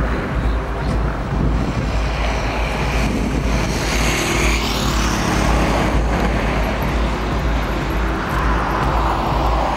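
Cars pass by on a nearby road.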